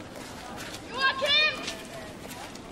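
A child shouts a name loudly outdoors.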